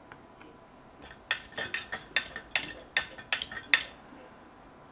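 A metal spoon clinks and scrapes against a metal pot.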